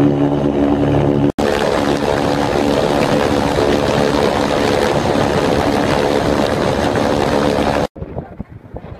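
An aircraft engine drones loudly and steadily up close.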